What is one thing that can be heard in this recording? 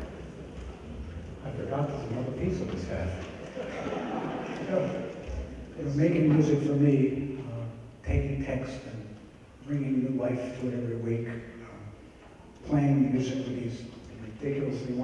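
A man speaks calmly into a microphone over loudspeakers in a large echoing hall.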